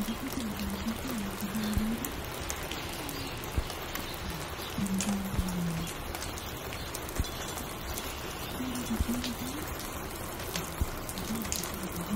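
Vinyl crackle pops and hisses throughout.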